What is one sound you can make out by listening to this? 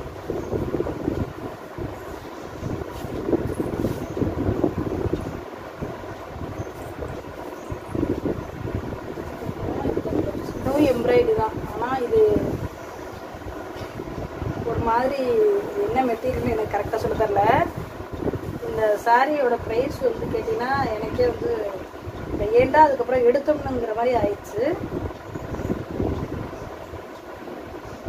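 Fabric rustles and swishes as it is handled and unfolded close by.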